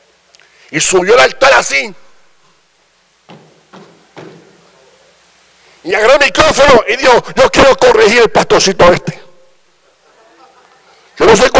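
A middle-aged man speaks loudly and with animation into a microphone in a large echoing hall.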